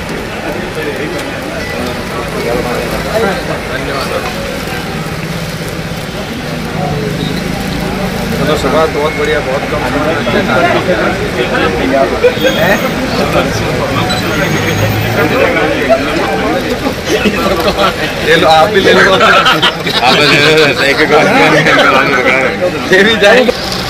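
Several men talk and chatter nearby, outdoors.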